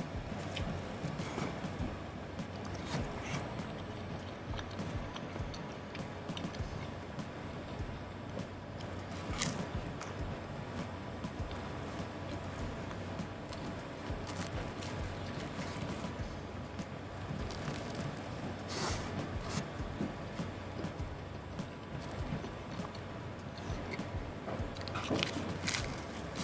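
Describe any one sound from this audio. A man chews food noisily close by.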